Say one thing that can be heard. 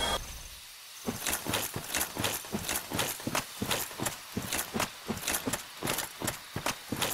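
Footsteps crunch steadily over soft ground.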